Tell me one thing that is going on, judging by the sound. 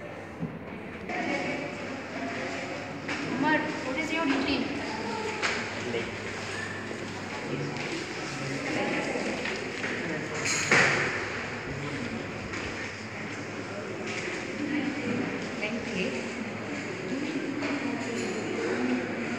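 Children chatter and talk nearby.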